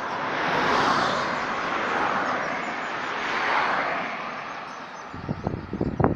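Wind rustles through the leaves of nearby trees.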